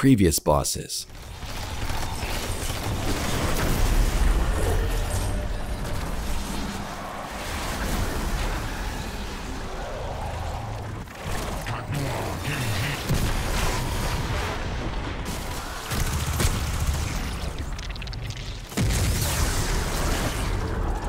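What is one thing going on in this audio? Guns fire in a loud game battle.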